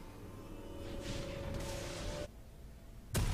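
Magic spells crackle and burst with a whoosh.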